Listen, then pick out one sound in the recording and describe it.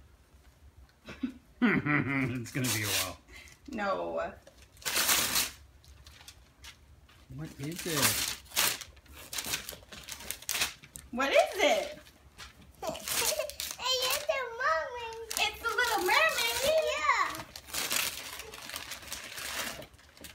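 Wrapping paper rustles and tears.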